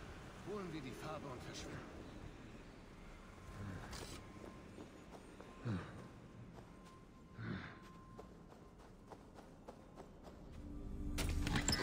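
Footsteps crunch on soft ground.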